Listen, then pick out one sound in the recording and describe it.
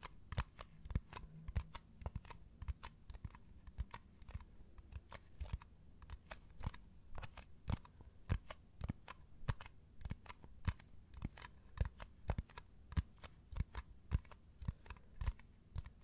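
Fingernails tap and click on a metal tin lid, close up.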